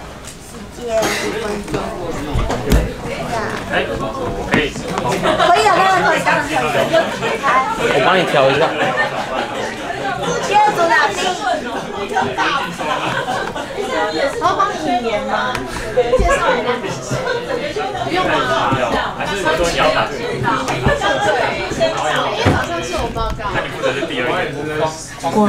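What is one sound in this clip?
A young man speaks into a microphone over a loudspeaker in a large room.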